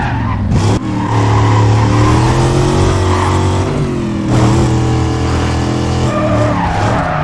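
A V8 muscle car engine roars at full throttle.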